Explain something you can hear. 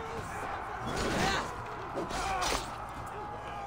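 A sword swishes and strikes in a fight.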